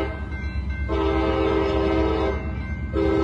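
A train horn blows loudly in long blasts in the distance.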